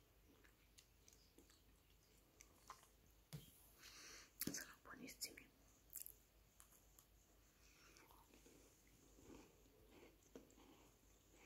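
A young woman chews with her mouth closed, making soft smacking sounds.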